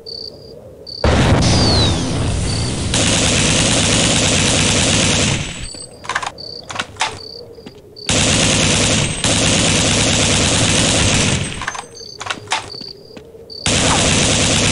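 A rifle fires long rapid bursts.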